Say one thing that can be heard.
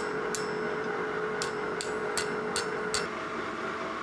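A hammer strikes hot metal on an anvil with sharp metallic clangs.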